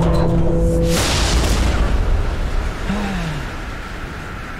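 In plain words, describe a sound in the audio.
A loud blast booms and rumbles.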